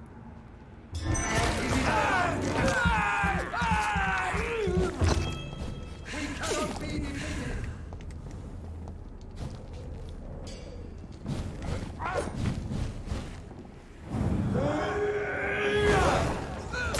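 A blade slashes and strikes repeatedly in a fight.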